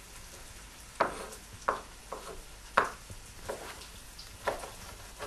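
A knife chops through a vegetable onto a wooden board with sharp knocks.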